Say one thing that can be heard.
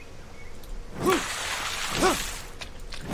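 Water splashes as a spear jabs into it.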